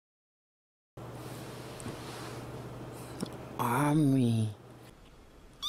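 A young man murmurs close up.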